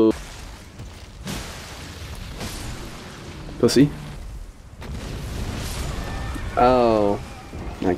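A huge dragon roars loudly.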